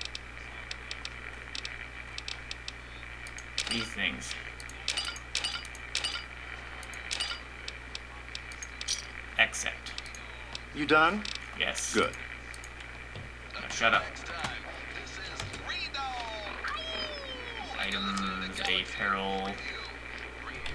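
Game menu selections click and blip.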